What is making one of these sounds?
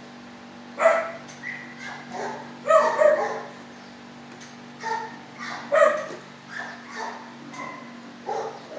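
A dog barks repeatedly.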